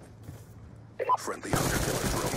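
Rapid gunshots crack loudly.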